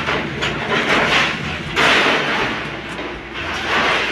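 Corrugated metal sheets clatter and scrape.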